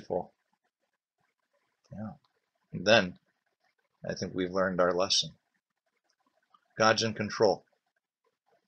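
An older man speaks calmly and close to a microphone, in short phrases with pauses.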